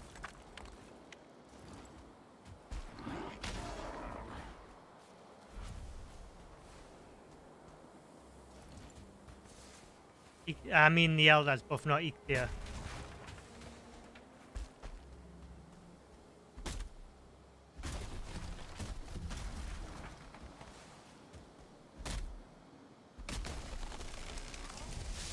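An axe chops into wood with sharp knocks.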